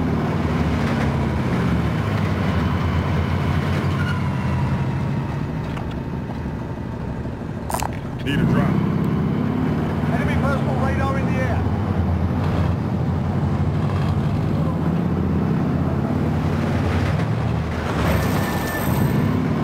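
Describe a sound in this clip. A truck engine rumbles steadily as the truck drives along a road.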